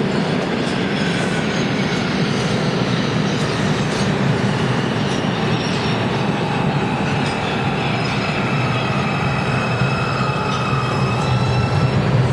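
Train brakes squeal as the train slows.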